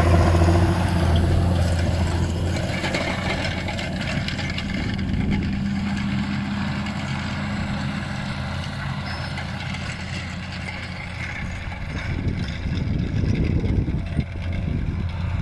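A harrow scrapes and rattles through dry soil.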